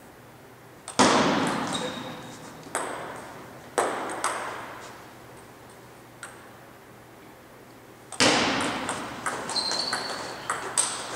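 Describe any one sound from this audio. A ping-pong ball clicks sharply off paddles and a table, echoing through a large hall.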